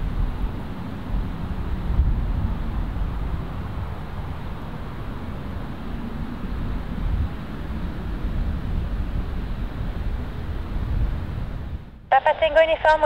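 A single-engine turboprop aircraft taxis on a runway.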